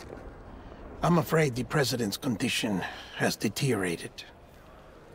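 A middle-aged man speaks calmly and gravely, close by.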